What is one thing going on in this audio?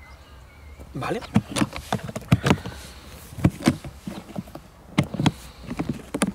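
Plastic latches click and knock on a hard case.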